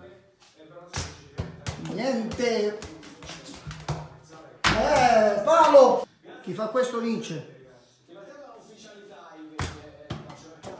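A small ball bounces and rolls across a hard floor.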